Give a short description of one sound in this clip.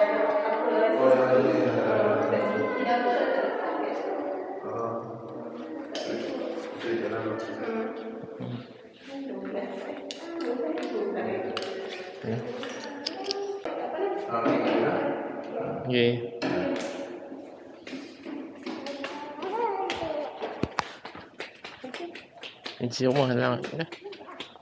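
A woman talks calmly close by.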